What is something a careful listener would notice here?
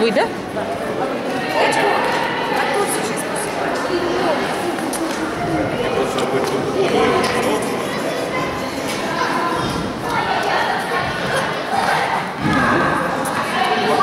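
Tennis balls bounce on a hard floor.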